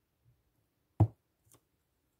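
A stamp presses down onto paper with a soft thump.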